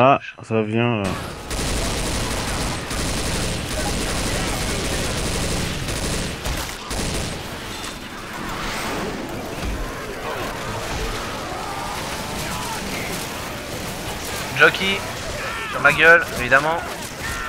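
A rifle fires rapid bursts of gunshots.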